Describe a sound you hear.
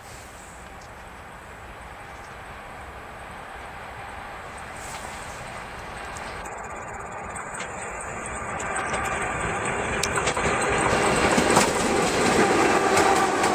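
A freight train approaches, its rumble growing steadily louder.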